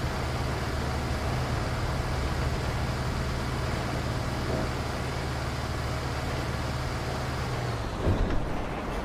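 A bus engine hums steadily while driving along a road.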